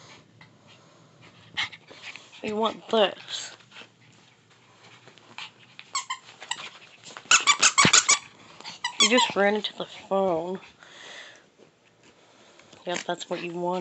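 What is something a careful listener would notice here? A Chihuahua puppy growls while playing with a toy.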